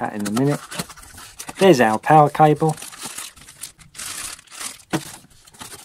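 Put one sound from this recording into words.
Cardboard packaging rustles and scrapes under handling hands.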